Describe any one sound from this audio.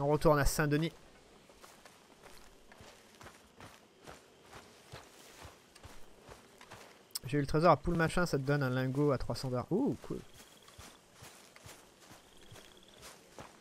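Footsteps crunch through grass and undergrowth.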